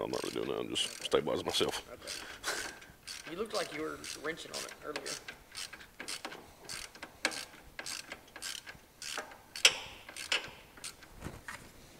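Metal parts clink and scrape together close by.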